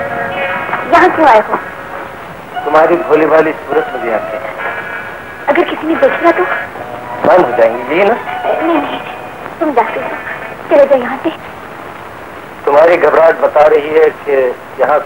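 A woman speaks with agitation nearby.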